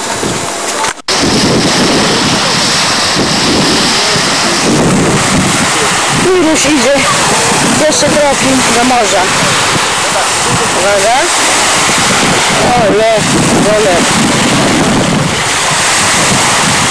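Small waves wash and break onto a shore.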